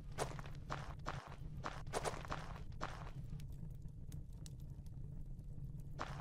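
Footsteps thud on a stone floor.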